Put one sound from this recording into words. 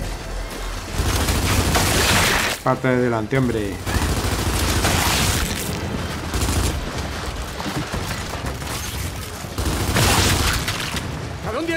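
Gunfire bursts loudly in rapid volleys.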